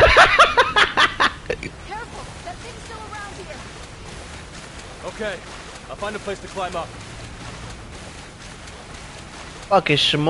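Water sloshes softly as a swimmer paddles through it.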